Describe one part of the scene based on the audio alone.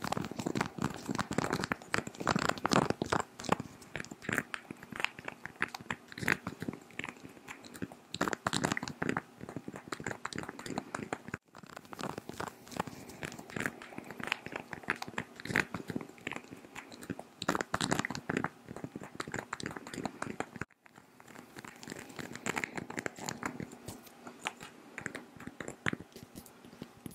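Fingernails tap and click on a small glass bottle very close to a microphone.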